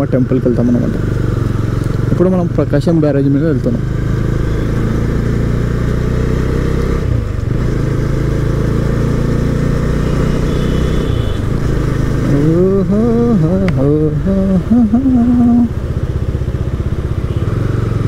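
A motorcycle engine hums while riding along a road.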